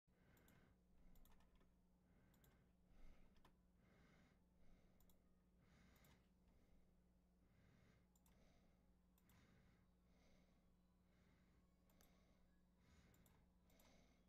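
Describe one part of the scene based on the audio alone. A man sings softly, close by.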